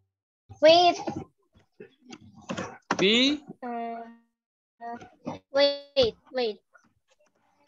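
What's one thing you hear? Young children speak with animation over an online call.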